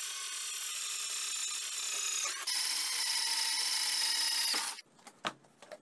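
A cordless drill whirs as it bores through metal.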